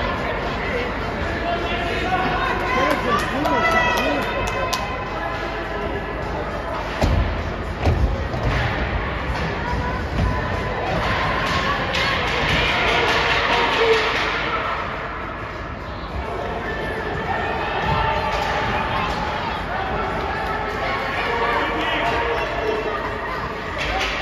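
A crowd of spectators chatters in a large echoing rink.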